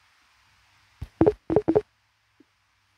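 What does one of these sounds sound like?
Coins clink and jingle as a game reward is collected.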